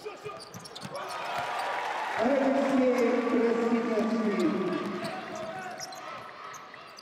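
A crowd cheers in a large echoing arena.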